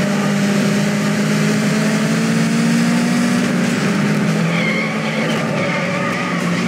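A car engine roars at high revs, steady and loud.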